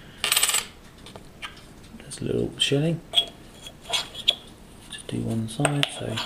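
A coin clinks against a ceramic dish.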